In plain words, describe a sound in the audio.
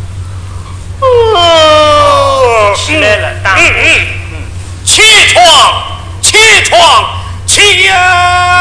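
A young man sings out loudly in a wavering voice.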